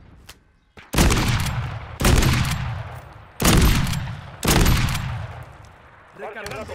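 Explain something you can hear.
A rifle fires loud booming shots.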